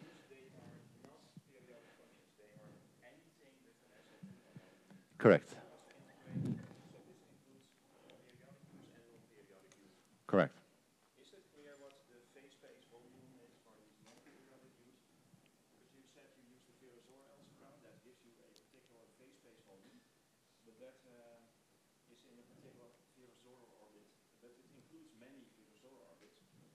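A man lectures calmly through a clip-on microphone.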